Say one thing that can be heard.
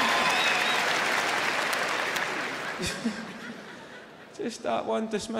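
A large crowd applauds and cheers in a big hall, then fades.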